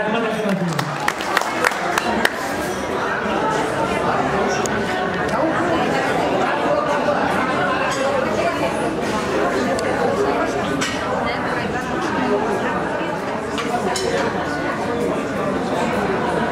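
A crowd of men and women chatters at a busy gathering.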